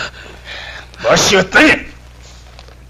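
A young man groans with effort.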